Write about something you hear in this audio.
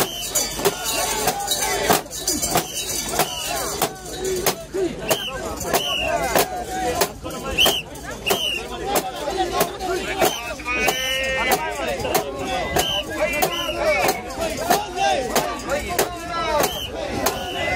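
A crowd of men chants and shouts loudly in rhythm up close.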